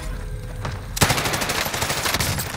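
An automatic rifle fires a rapid burst of shots close by.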